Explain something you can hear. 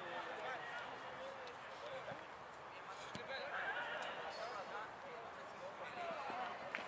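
Several young men talk and call out at once outdoors.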